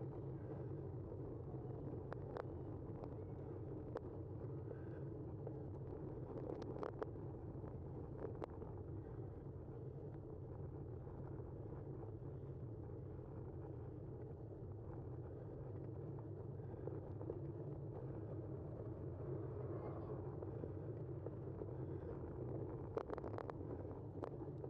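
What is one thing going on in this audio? Bicycle tyres roll over asphalt.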